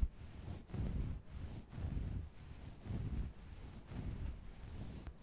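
Fingertips rub and scratch softly on a fluffy towel, close up.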